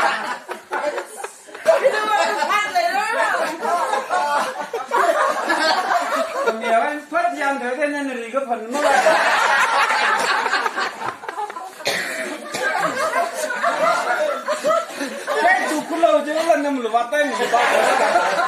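Men laugh together.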